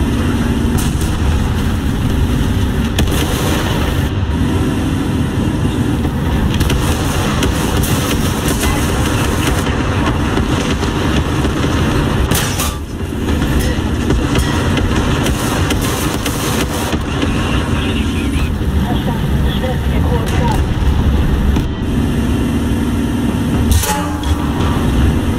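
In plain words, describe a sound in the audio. A tank engine rumbles.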